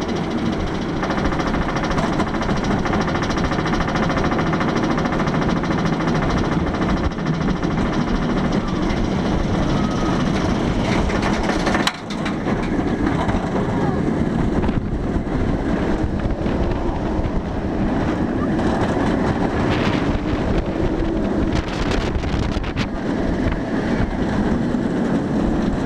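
Wind roars past loudly outdoors.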